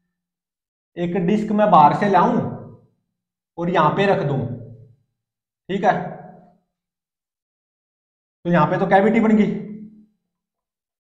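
A young man speaks clearly in short phrases, close by.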